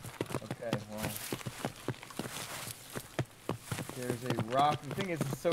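Footsteps thud quickly over grass.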